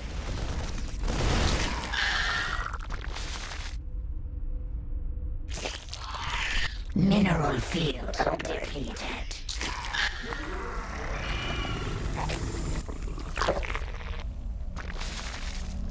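Laser weapons zap and crackle.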